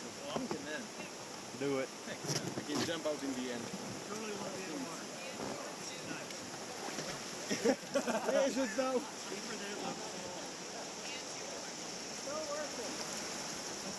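River water flows and laps steadily against a raft.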